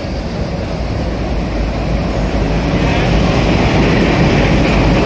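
A train rumbles loudly as it rolls in alongside the platform.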